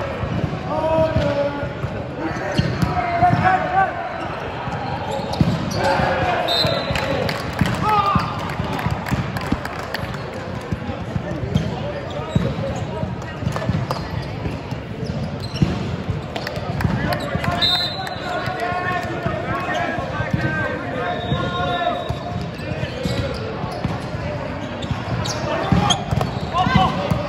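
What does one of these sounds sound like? Teenage boys shout and call out on court.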